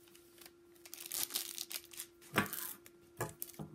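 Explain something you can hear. A wrapper crinkles and tears.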